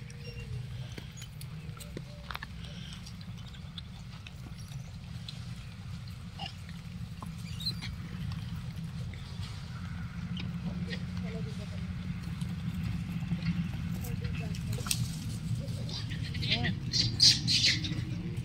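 Monkeys munch on fruit close by.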